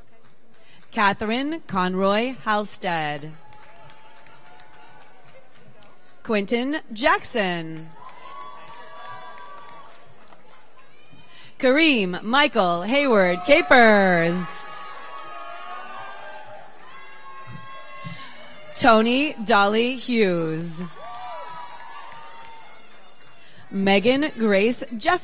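A woman reads out names over a loudspeaker in a large echoing hall.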